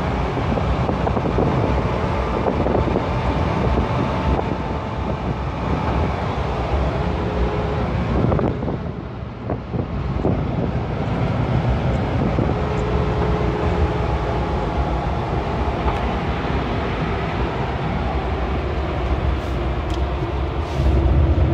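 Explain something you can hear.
A vehicle engine drones steadily from inside the cab while driving.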